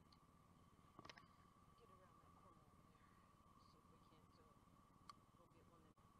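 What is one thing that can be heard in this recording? A fishing reel clicks sharply a few times.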